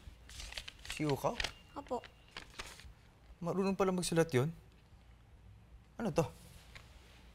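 A man speaks calmly in a low voice, close by.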